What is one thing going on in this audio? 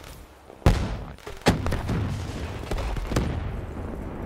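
A rifle fires single shots in a video game.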